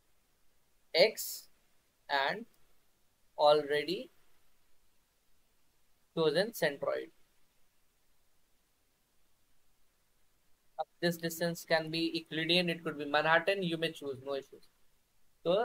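A young man speaks calmly through an online call, pausing between phrases.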